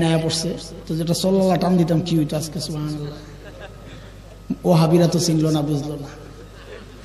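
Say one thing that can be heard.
A man speaks animatedly into a microphone, heard through loudspeakers.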